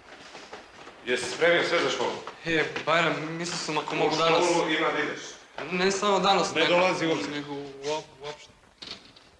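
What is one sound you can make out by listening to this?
A young man talks calmly, with a slight echo.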